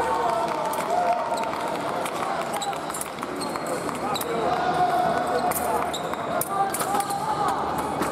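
Fencing blades click against each other.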